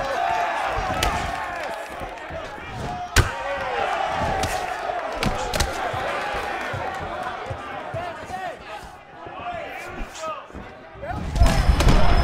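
Punches thud against a fighter.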